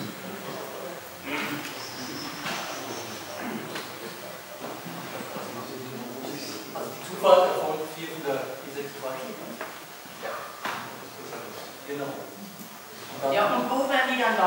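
A man speaks calmly from a short distance.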